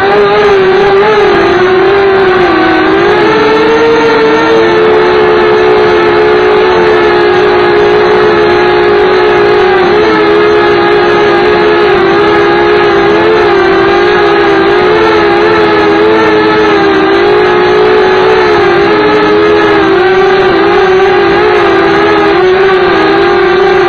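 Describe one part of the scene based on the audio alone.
A drone's propellers buzz loudly and steadily close by, wavering slightly in pitch.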